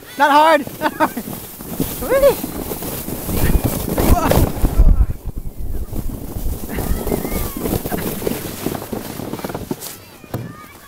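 A sled scrapes and hisses over snow.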